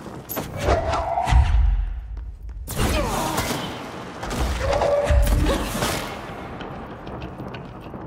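Heavy objects crash and clatter as they are hurled.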